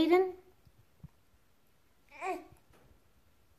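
A baby squeals nearby.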